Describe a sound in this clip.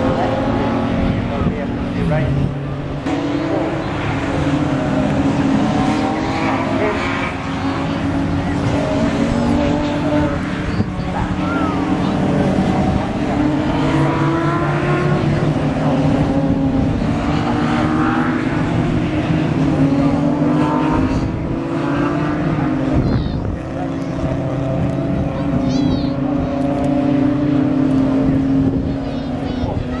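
Racing car engines roar and rev loudly as the cars speed by.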